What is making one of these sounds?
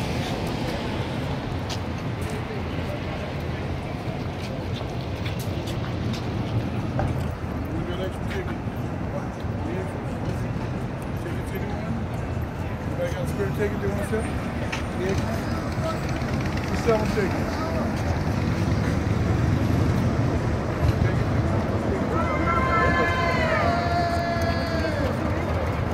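A crowd murmurs and chatters outdoors nearby.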